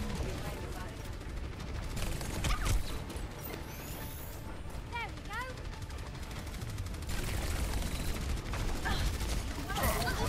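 Pistols fire rapid shots.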